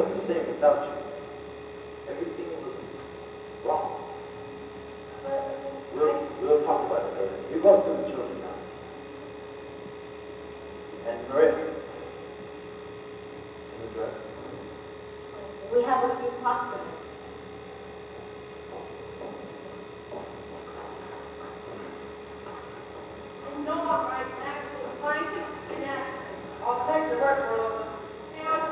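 A woman speaks, heard from a distance in an echoing hall.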